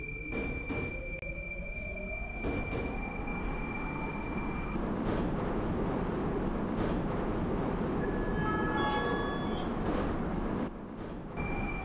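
A metro train rumbles along the track and brakes to a stop.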